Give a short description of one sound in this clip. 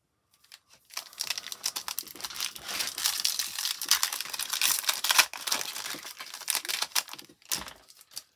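A foil wrapper crinkles and tears as a pack is opened.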